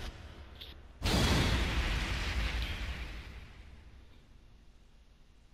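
A deep whoosh slams in and fades.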